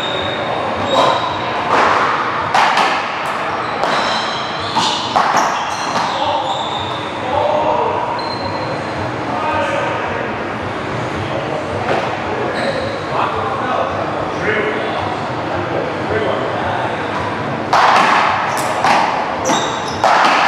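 A ball bangs against a wall.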